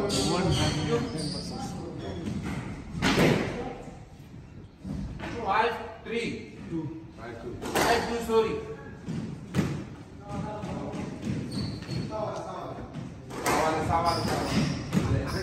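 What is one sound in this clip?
A squash ball smacks sharply against walls and rackets in an echoing court.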